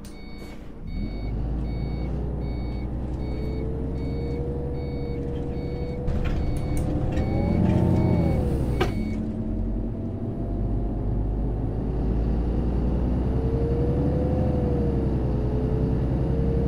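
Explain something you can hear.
A bus engine rumbles and revs as the bus pulls away.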